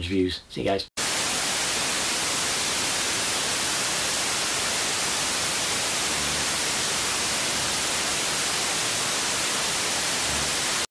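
Loud television static hisses steadily.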